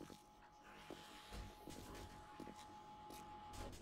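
A pickaxe strikes into dirt.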